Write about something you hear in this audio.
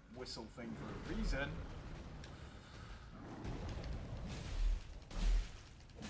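A huge beast roars.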